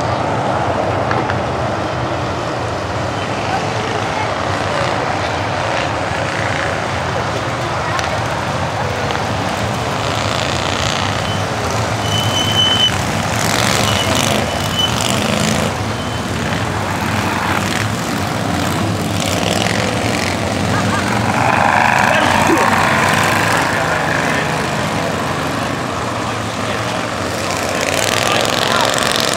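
Race car engines roar past at speed.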